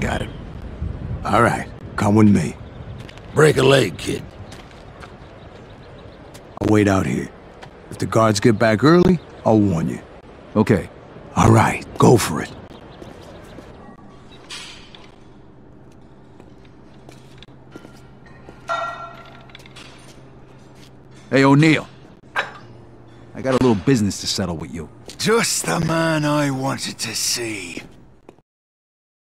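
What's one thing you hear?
A young man speaks in a low, tense voice.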